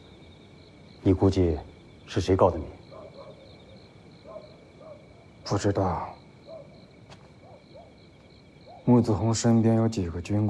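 A middle-aged man speaks in a low, calm voice.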